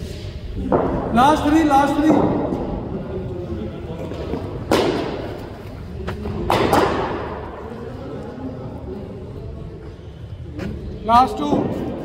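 Footsteps thud on an artificial pitch.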